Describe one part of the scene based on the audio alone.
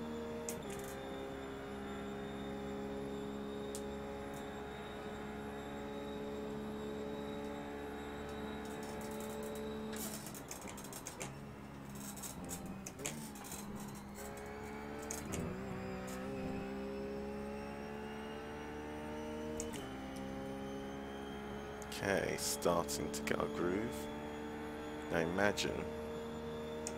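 A race car engine drones at high revs, easing off and picking up again.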